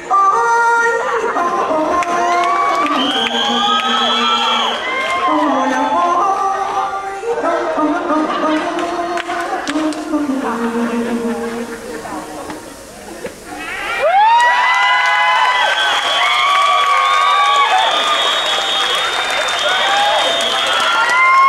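A young man sings loudly and with emotion through a loudspeaker.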